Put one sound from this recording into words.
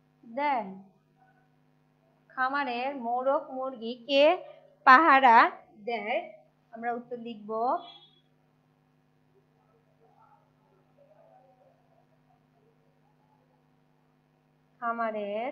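A woman speaks clearly and at a steady pace, close by, in short bursts with pauses.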